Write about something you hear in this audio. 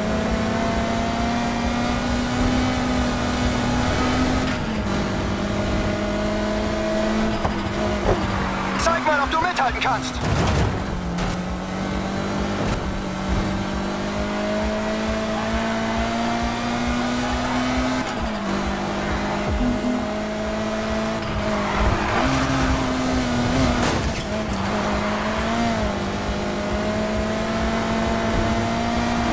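A car engine roars at high revs, dropping briefly with each gear change.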